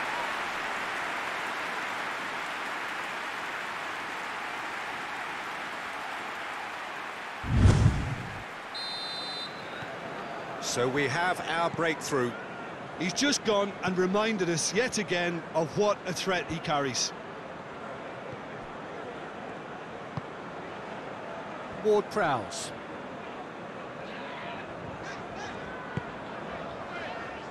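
A stadium crowd roars and cheers loudly, then settles to a steady murmur.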